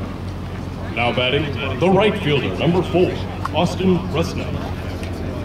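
A man talks loudly nearby.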